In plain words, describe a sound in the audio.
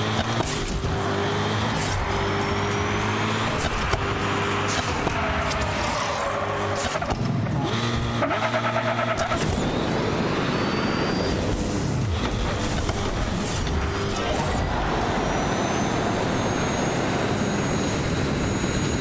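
A small racing engine buzzes and revs.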